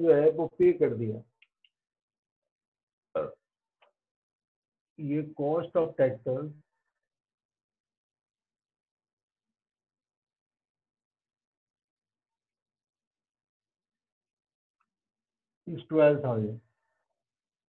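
A man speaks calmly nearby, pausing between phrases.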